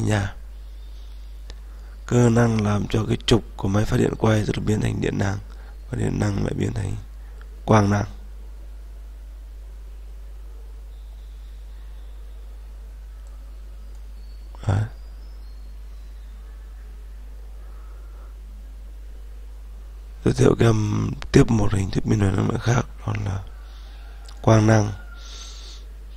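A man speaks calmly into a microphone, close by, in bursts with long pauses.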